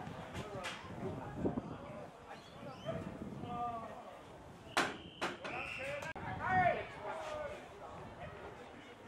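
Young players shout and call to each other on an open field outdoors.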